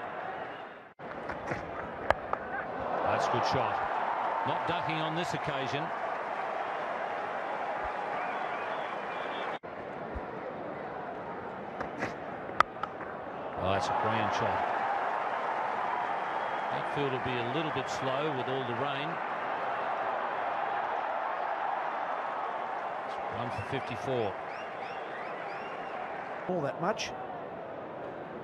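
A large crowd cheers and roars in a big stadium.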